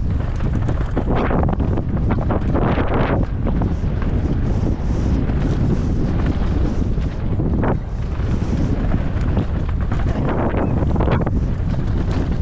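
A bike rattles and clatters over rough ground.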